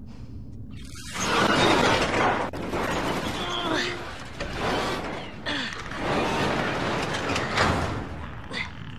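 A metal shutter rattles and scrapes as it is pushed up.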